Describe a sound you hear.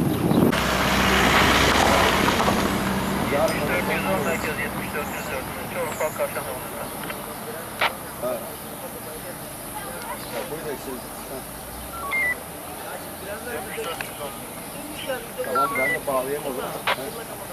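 A man talks on a phone nearby, outdoors.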